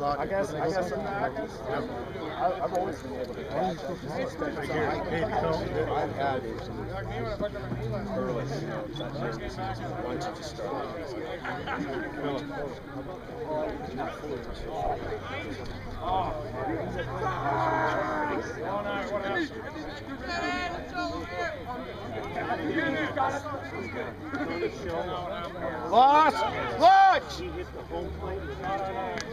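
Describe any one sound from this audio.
Players and onlookers shout and call out across an open field.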